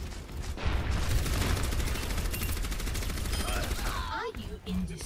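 A game gun fires rapid bursts of shots.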